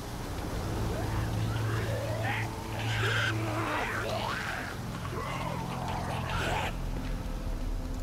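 Creatures shriek and screech in the darkness.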